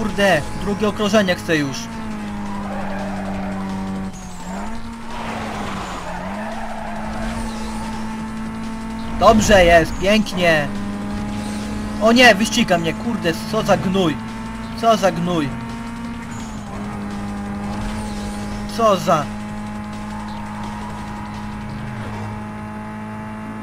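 A racing car engine roars steadily at high speed.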